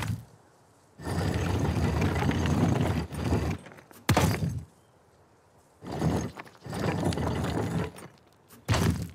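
A heavy stone dial grinds as it turns.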